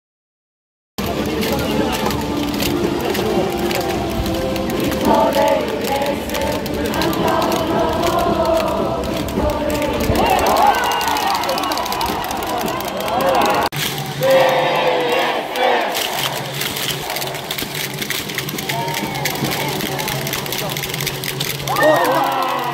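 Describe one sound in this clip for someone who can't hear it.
A crowd claps in rhythm.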